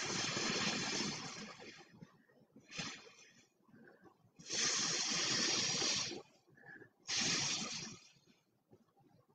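Air is blown through a straw in long, hissing bursts.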